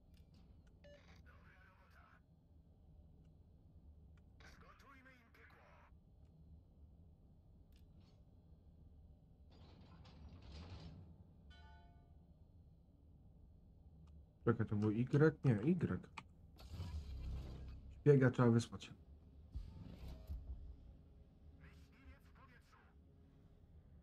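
A man speaks casually into a close microphone, in short bursts.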